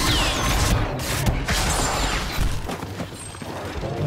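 Blaster shots crack in quick bursts.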